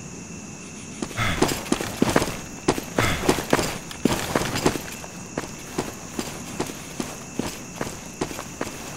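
Footsteps crunch steadily through dry leaves and brush.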